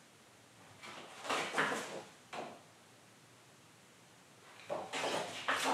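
A young man speaks quietly and close to a microphone.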